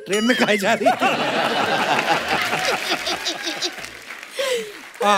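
A woman laughs loudly.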